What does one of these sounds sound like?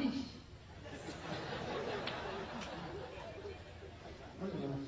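A crowd cheers and claps.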